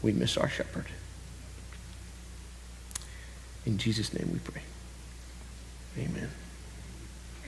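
A man speaks slowly and calmly through a microphone, with long pauses.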